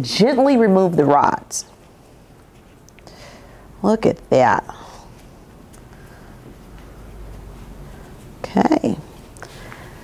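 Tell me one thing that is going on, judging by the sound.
A woman speaks calmly and clearly into a close microphone, in short phrases.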